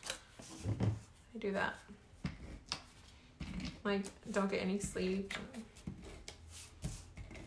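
Paper rustles and slides.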